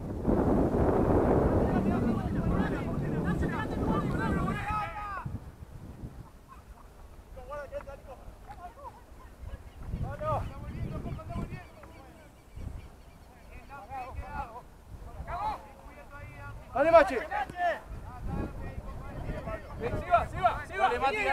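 Young men shout to each other across an open field, some distance away.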